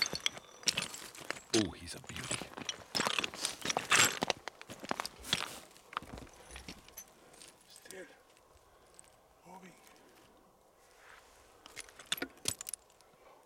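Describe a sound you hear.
Footsteps crunch on gravel and dry brush close by.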